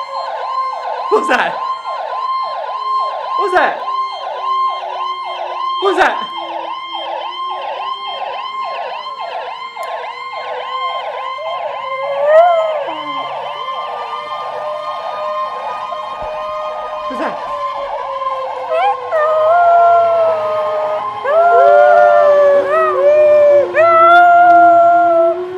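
An emergency vehicle siren yelps rapidly, then slows to a wail, heard through a loudspeaker.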